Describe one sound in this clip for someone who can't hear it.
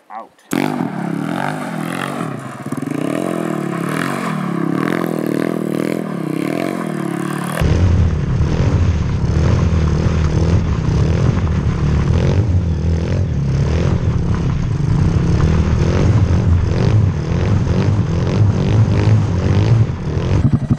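Tyres skid and spray gravel.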